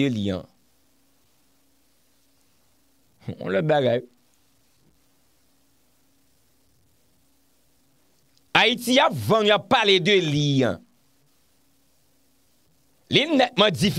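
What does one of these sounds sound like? A young man speaks animatedly into a close microphone, in bursts with long pauses.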